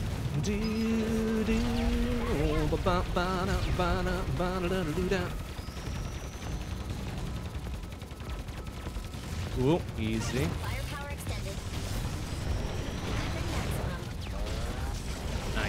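Rapid video game gunfire and blasts clatter on.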